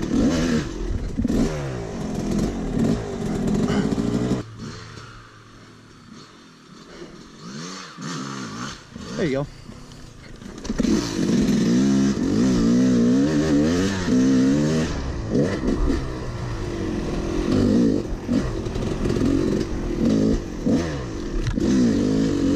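A dirt bike engine revs up and down, roaring loudly close by.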